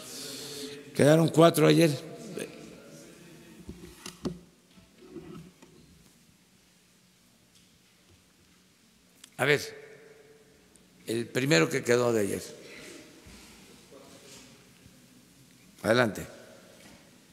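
An elderly man speaks through a microphone in short, loud bursts in an echoing hall.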